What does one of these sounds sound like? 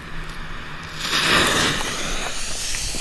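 A firework bursts with a loud rushing whoosh.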